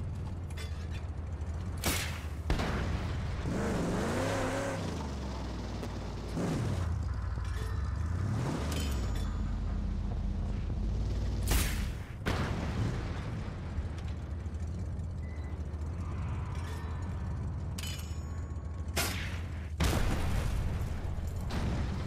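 A V8 muscle car engine revs and roars.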